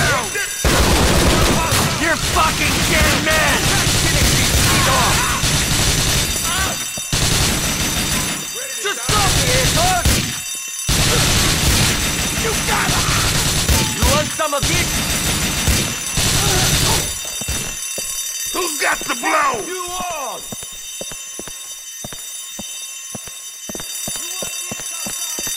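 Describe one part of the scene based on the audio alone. Rapid gunfire rattles and echoes in a large hall.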